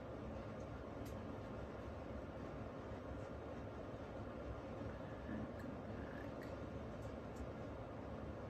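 Small objects click softly on a table.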